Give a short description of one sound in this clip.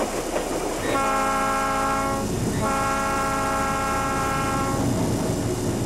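A train horn blares loudly twice.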